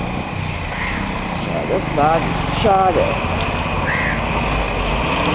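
A small motorcycle passes close by.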